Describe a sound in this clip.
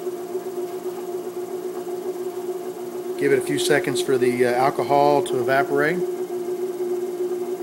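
A lathe motor hums steadily as a workpiece spins.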